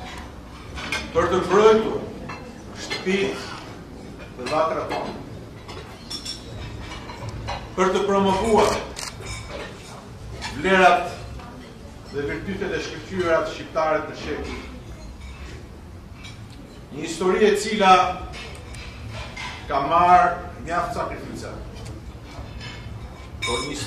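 A middle-aged man speaks slowly and firmly into a microphone, with pauses between phrases.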